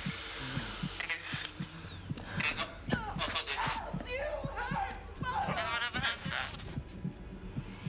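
A young man talks excitedly and yelps into a microphone.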